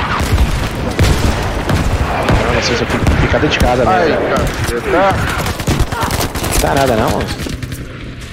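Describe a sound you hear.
Rifle shots crack in quick bursts.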